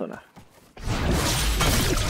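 A pickaxe swings through the air.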